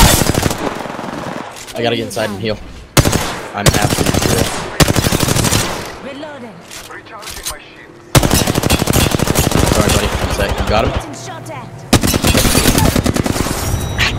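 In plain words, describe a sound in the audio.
Rapid automatic gunfire rattles in quick bursts.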